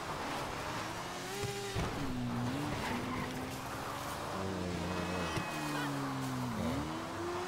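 A motorcycle engine revs and hums as it rides over rough ground.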